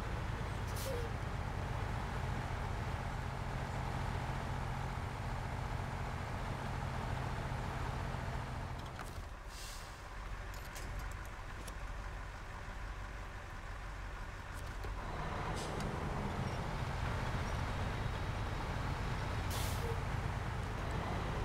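A heavy truck engine rumbles low and steady, then quietens and picks up again.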